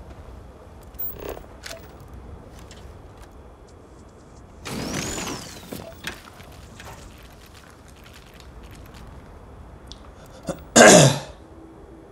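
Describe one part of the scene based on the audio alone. Electronic scanner tones chime and sweep in short bursts.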